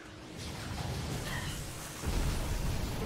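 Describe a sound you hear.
Electric energy crackles and sizzles loudly.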